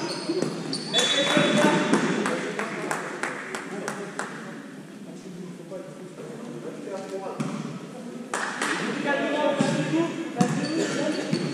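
A ball thuds on a hard floor.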